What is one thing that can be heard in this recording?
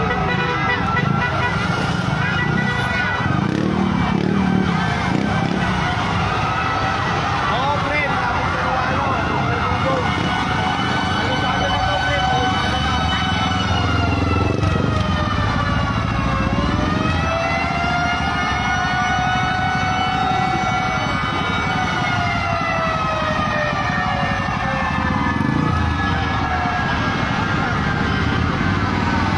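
Several sirens wail nearby, rising and falling throughout.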